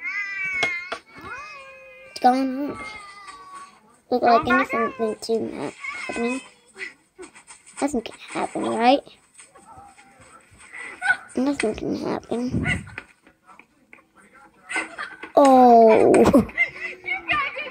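A child squeals in a high voice.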